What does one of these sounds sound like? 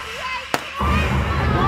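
A confetti cannon fires with a sharp pop.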